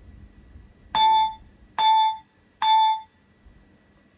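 An arcade game gives three short, bright beeps.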